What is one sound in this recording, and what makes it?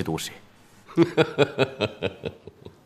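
A middle-aged man laughs.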